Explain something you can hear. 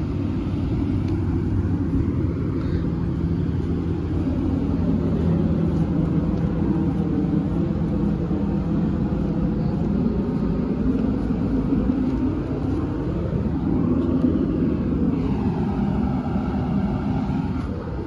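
A diesel school bus engine idles.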